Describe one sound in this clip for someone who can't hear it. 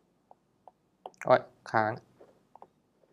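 A young man speaks briefly and calmly into a close microphone.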